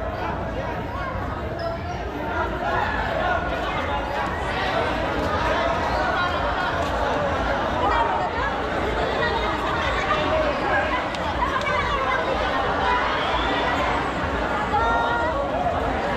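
A large crowd of children and young people chatters and shouts under an echoing roof.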